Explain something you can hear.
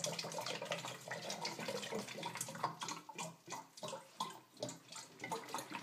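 Water splashes into a metal sink.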